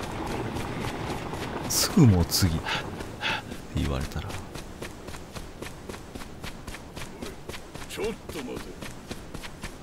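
Footsteps run quickly over packed dirt.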